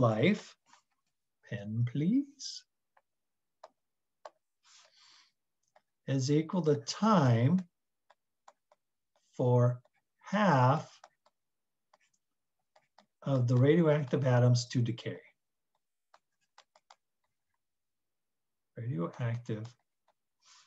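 A man speaks calmly and slowly through a microphone, with pauses.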